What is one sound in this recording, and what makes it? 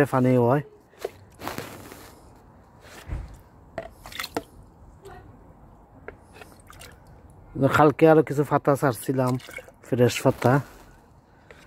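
Water sloshes and splashes as a jug is dipped into a bucket.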